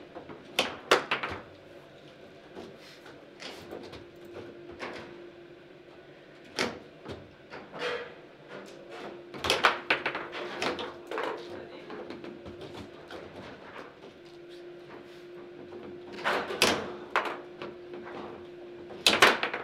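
Foosball rods rattle and thud as players spin and shove them.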